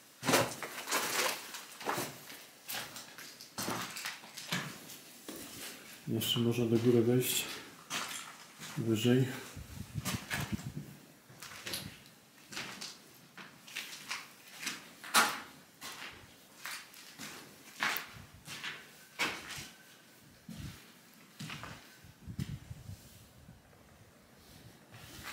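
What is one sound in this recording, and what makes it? Footsteps crunch over loose debris and grit.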